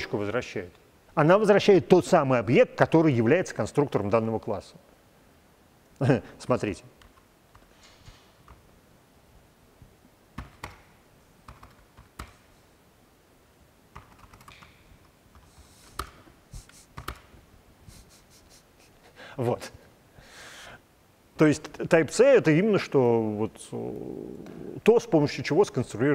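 A man speaks calmly into a nearby microphone, pausing now and then.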